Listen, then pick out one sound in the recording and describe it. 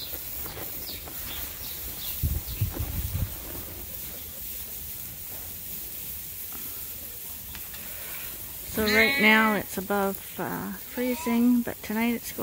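Dry straw rustles as it is pulled from a bale.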